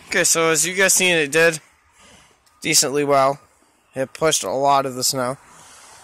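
Footsteps crunch on packed snow.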